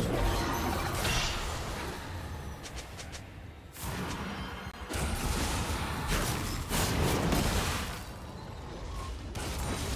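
Magical spell effects whoosh and crackle in bursts.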